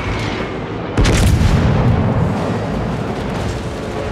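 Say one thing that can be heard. Explosions rumble around a burning warship.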